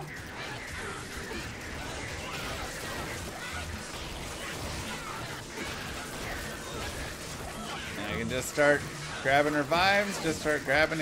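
Fiery spells crackle and burst in a busy battle.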